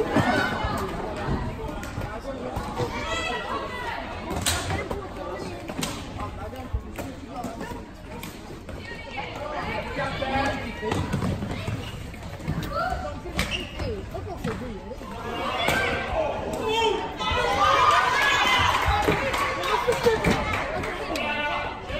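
Young girls shout and call out in a large echoing hall.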